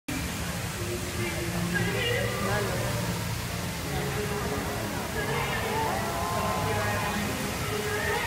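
Water from a large fountain rushes and splashes steadily.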